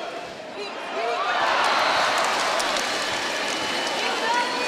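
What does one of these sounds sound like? A crowd cheers loudly after a free throw.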